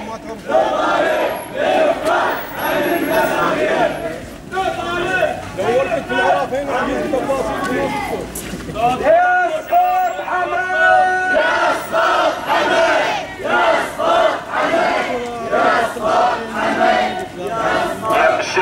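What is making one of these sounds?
A crowd of men chants slogans loudly in unison outdoors.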